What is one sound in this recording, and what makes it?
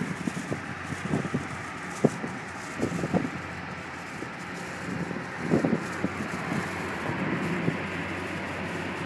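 Wind rushes through an open car window.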